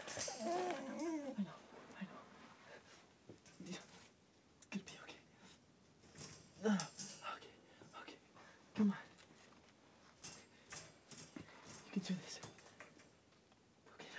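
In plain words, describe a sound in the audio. A wire cage rattles and clinks as a hand pushes against it.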